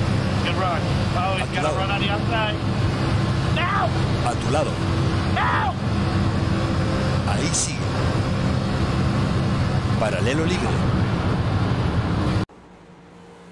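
A race car engine drones loudly at high speed.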